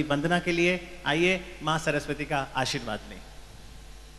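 A man speaks with animation into a microphone over loudspeakers in a large hall.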